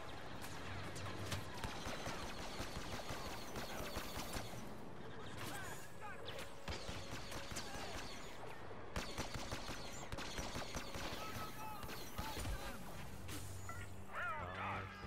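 Rifle shots crack rapidly in bursts.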